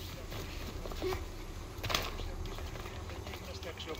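Footsteps run across stone.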